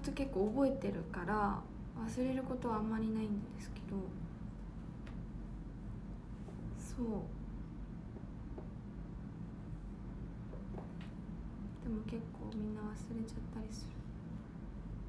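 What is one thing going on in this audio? A young woman speaks calmly and close to a microphone, with pauses.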